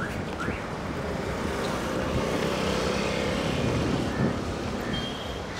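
Traffic passes along a road nearby.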